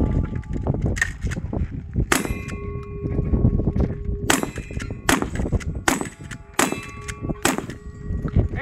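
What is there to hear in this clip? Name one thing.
A rifle fires sharp shots one after another outdoors.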